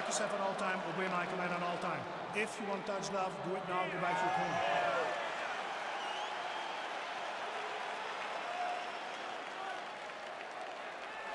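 A crowd cheers and roars steadily.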